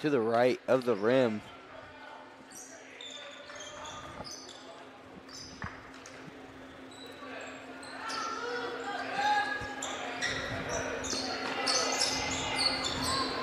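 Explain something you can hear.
A crowd chatters and cheers in an echoing gym.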